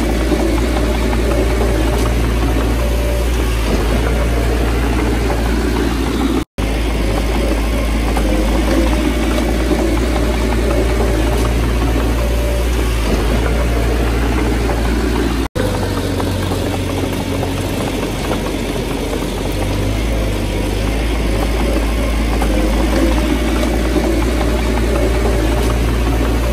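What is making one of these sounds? Loose soil scrapes and slides as a bulldozer blade pushes it.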